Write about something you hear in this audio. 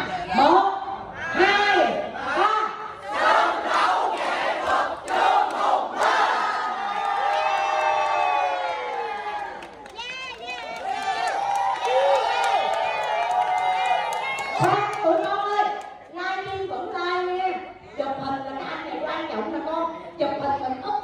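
A crowd of men and women sings loudly together.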